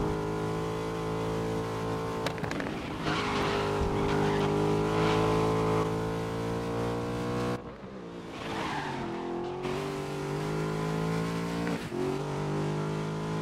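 A race car engine roars loudly at high revs.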